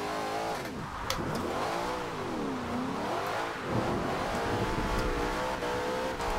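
Tyres squeal as a car slides sideways.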